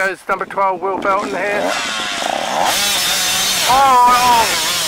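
Motorcycle engines rev loudly close by.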